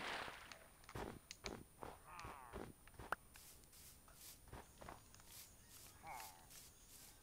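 Footsteps thud on soft ground in a game.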